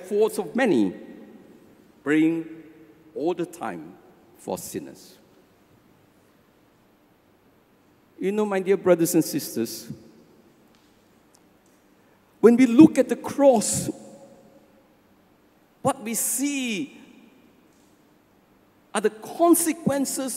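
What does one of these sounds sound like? An elderly man speaks slowly and with feeling into a microphone, with pauses between phrases, in an echoing hall.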